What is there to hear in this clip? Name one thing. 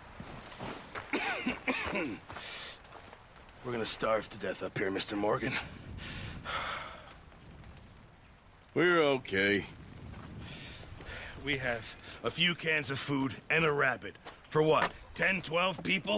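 A man speaks gruffly and wearily, close by.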